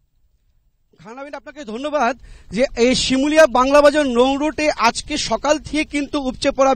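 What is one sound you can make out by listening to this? A man speaks steadily into a microphone outdoors.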